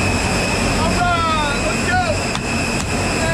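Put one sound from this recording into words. A man shouts over loud engine noise.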